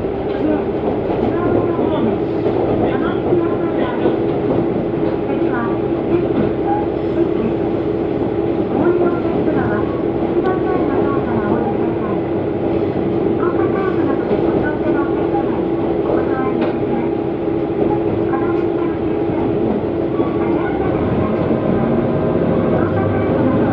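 A diesel railcar's engine drones, heard from inside.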